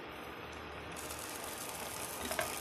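Soup bubbles and simmers loudly in a pan.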